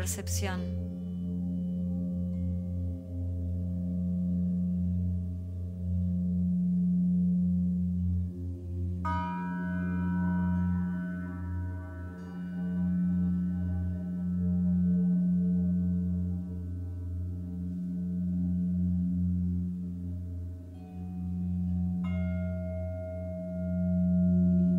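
Crystal singing bowls hum with a deep, steady, pulsing drone.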